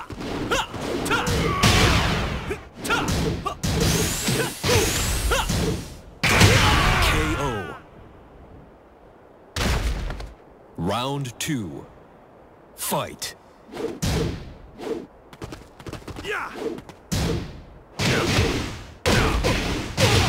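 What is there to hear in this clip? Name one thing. Punches and kicks land with heavy, sharp thuds.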